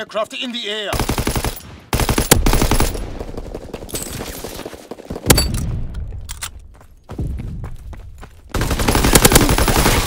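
Rapid gunfire bursts loudly and close by.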